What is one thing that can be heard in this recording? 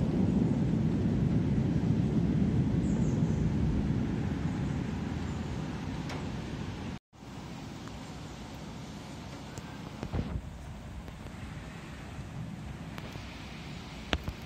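Wind blows outdoors in a low, steady rumble that weakens partway through.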